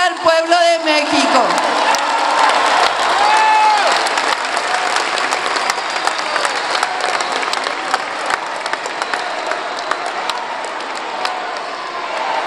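A large crowd claps and applauds.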